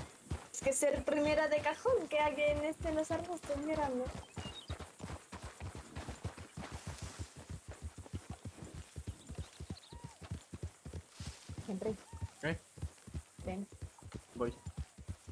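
Horses' hooves clop steadily on dirt and grass.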